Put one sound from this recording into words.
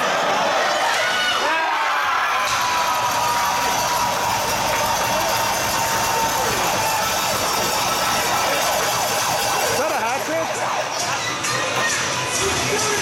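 A crowd cheers and shouts loudly in an echoing rink.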